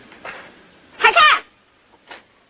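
A young man exclaims loudly nearby.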